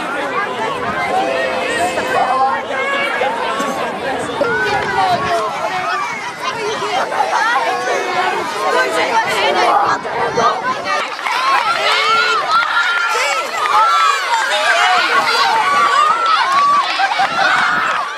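A crowd of children and adults chatters and cheers loudly outdoors.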